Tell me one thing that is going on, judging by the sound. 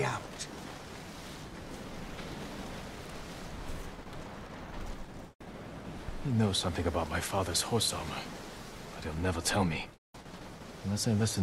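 Waves wash and crash against rocks.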